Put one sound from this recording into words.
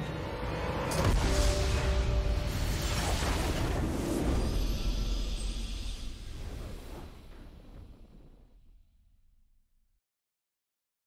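A game's triumphant victory fanfare bursts in with a deep boom, swells, then slowly fades away.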